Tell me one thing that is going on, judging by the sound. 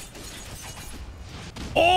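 A blade swishes through the air and clangs against metal.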